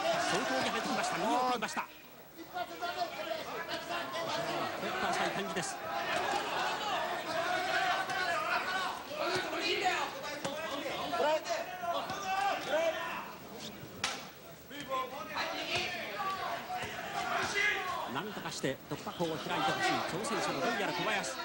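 Gloved punches thud against bodies.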